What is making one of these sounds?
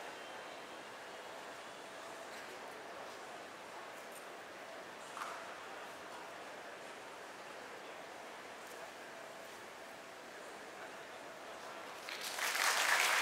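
Distant voices murmur and echo through a large, mostly empty hall.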